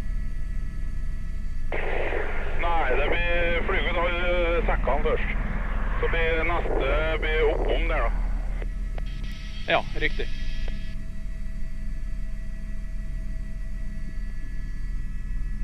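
A helicopter engine and rotor drone steadily throughout.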